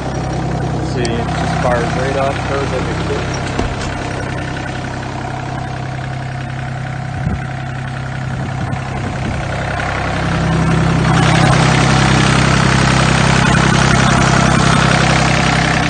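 A diesel engine idles with a steady low rumble, growing louder near the end.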